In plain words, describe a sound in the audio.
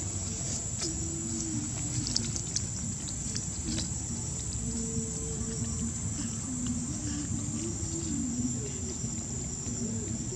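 A baby monkey whimpers softly nearby.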